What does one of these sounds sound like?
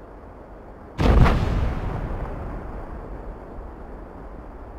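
A heavy cannon fires with a loud boom that rumbles and slowly fades.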